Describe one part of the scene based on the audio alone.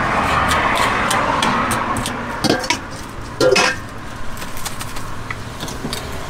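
A metal ladle scrapes and clinks against a metal bowl.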